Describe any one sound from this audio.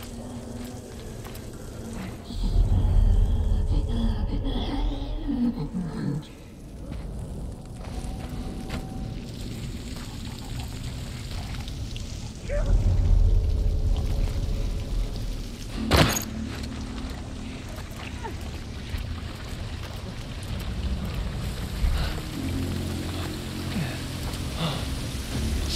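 Footsteps crunch softly over debris.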